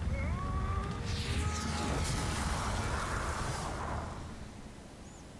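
A loud blast roars and rumbles, then fades.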